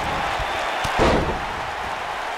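A body slams down hard onto a wrestling mat with a heavy thud.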